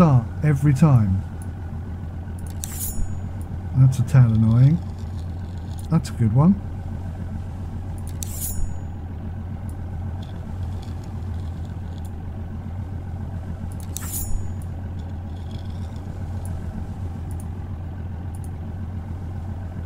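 A knife slices wetly through a fish.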